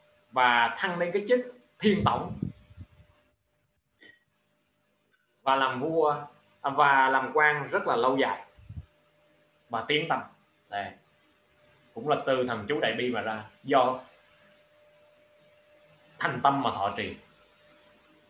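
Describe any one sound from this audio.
A man speaks calmly and close into a microphone, with pauses.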